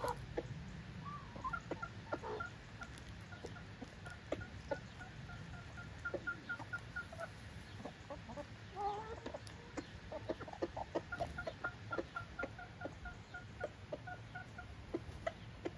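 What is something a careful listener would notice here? Hens cluck softly in a repeated murmur.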